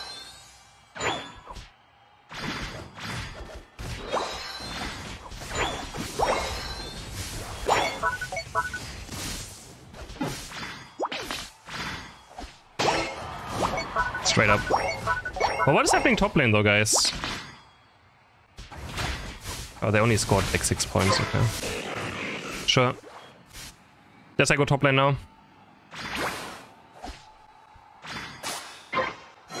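Game sound effects of blasts and strikes burst in quick succession.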